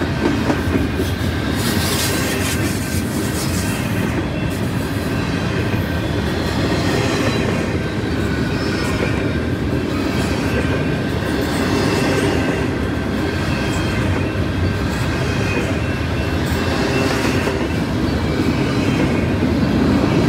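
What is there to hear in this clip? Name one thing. Steel wheels squeal faintly on the rails.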